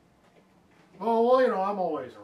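An older man speaks in a deep, drawn-out voice close by.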